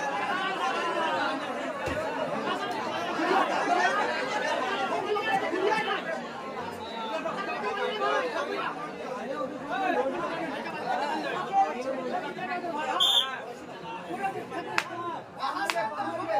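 A crowd of men shouts and cheers all around.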